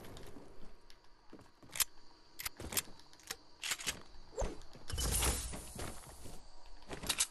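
Wooden building pieces snap into place with quick, sharp clacks.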